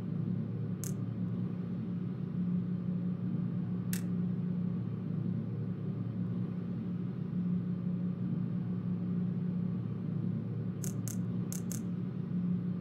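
A short electronic click sounds a few times.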